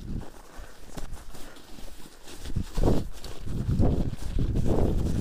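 Bicycle tyres crunch over packed snow.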